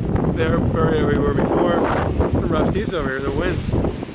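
Waves wash and break against a rocky shore.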